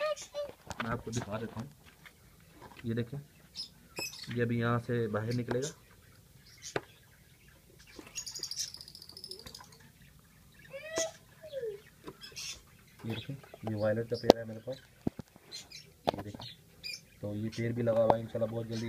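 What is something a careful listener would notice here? Lovebirds chirp and squawk up close.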